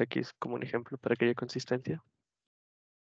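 A man speaks steadily through an online call.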